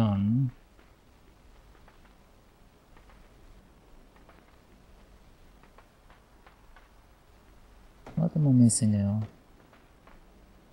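Light footsteps patter quickly on a hard surface.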